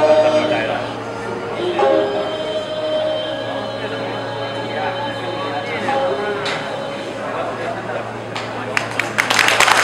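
A small band of fiddles, plucked lutes and a flute plays a lilting melody.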